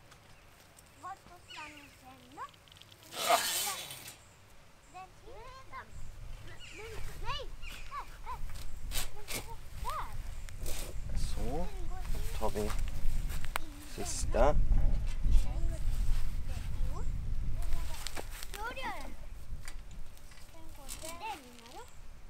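A man pulls up weeds, with leaves rustling and stems tearing close by.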